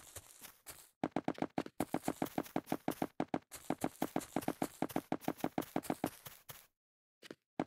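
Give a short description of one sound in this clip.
Quick footsteps tap across hard blocks in a game.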